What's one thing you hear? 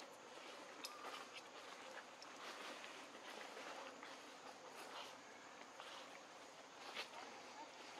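Leaves rustle as monkeys scuffle and wrestle.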